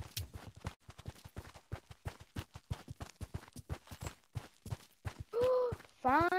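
Footsteps patter quickly on sand and hard ground.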